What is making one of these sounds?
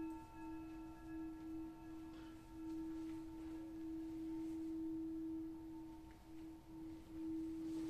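Singing bowls ring with a steady, humming tone that swells and fades.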